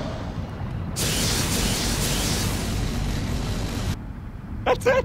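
Electricity crackles and hums loudly.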